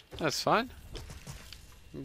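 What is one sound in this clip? A crystal deposit shatters under quick blows.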